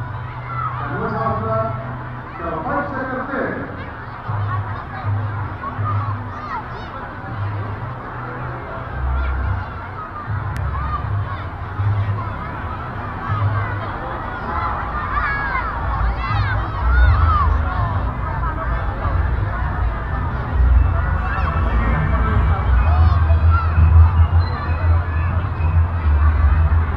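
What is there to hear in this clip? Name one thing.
A large crowd of men and women chatters and murmurs outdoors.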